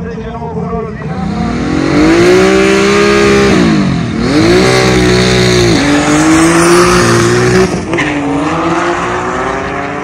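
A car engine revs loudly and roars as it accelerates close by, shifting through gears.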